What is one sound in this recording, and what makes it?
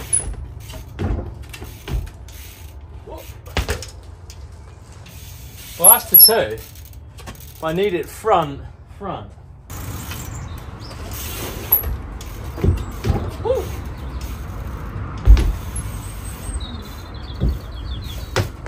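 Bike tyres thud onto wooden pallets.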